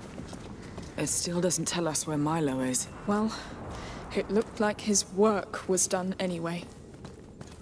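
A young woman answers quietly and thoughtfully, close by.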